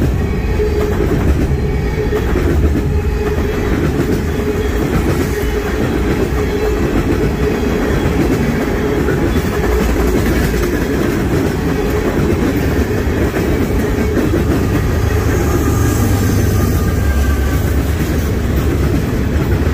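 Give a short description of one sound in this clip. Steel wheels clatter and screech on the rails.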